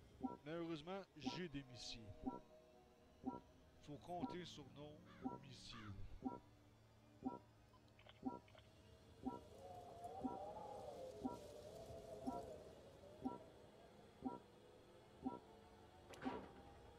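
A short beep sounds once every second.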